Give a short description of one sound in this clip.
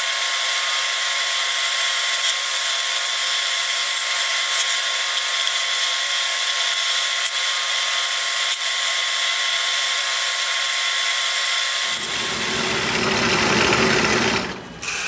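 A scroll saw buzzes steadily as it cuts through wood.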